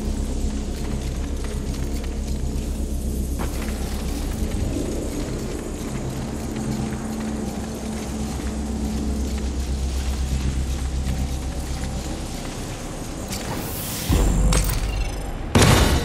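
Footsteps patter quickly across a stone floor.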